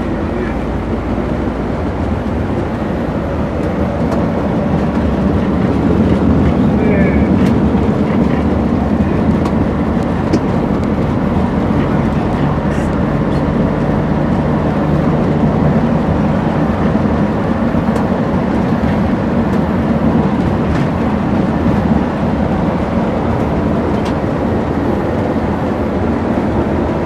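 A bus engine drones steadily from inside the cabin.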